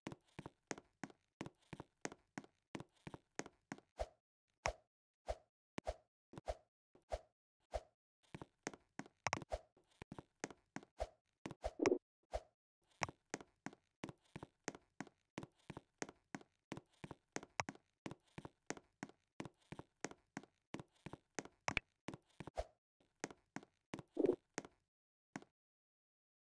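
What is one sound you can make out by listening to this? Short game sound effects pop rapidly and repeatedly.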